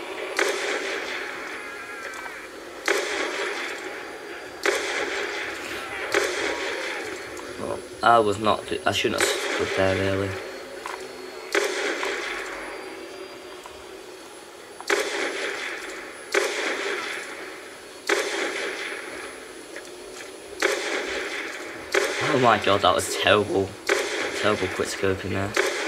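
Gunshots fire one at a time, each followed by a rolling echo.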